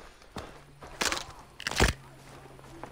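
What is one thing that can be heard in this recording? Hands clap together with a sharp smack.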